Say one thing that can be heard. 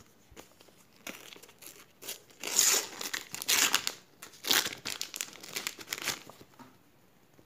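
A sticker's backing paper crackles as it is peeled off.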